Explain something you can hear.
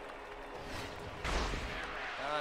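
A bat cracks against a ball.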